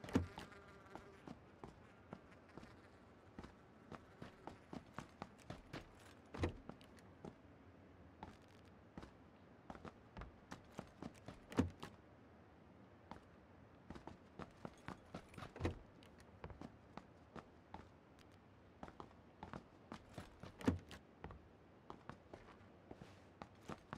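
Footsteps tap quickly on a hard floor indoors.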